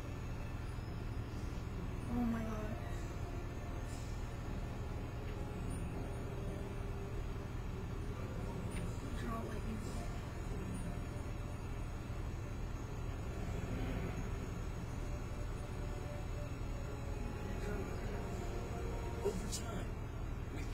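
Soft, slow music plays from a television.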